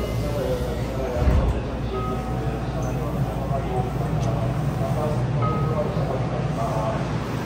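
A train carriage hums steadily.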